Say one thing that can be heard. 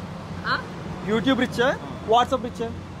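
A teenage boy answers into a microphone.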